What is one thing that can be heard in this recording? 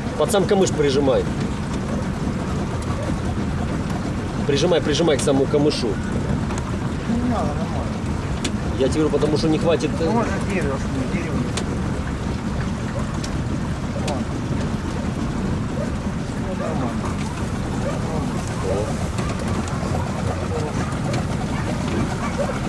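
Water splashes softly against a boat's hull.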